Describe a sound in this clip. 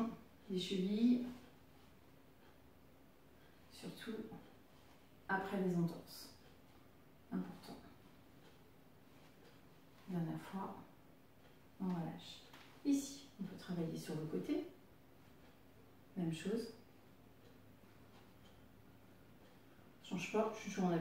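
A middle-aged woman speaks calmly in short phrases close by.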